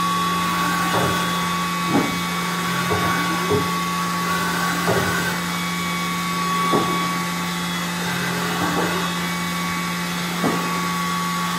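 A metal table slides back and forth with thuds as it stops.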